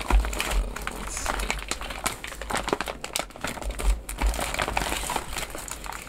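A plastic bag tears open.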